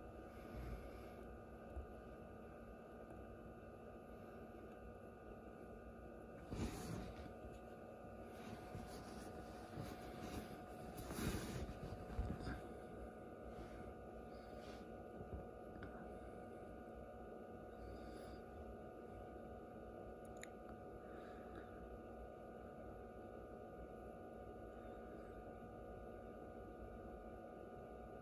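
An incubator fan hums steadily close by.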